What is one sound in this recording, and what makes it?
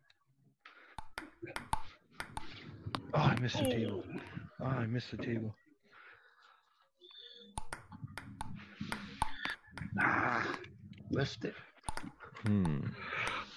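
A ping-pong ball clicks sharply against a paddle.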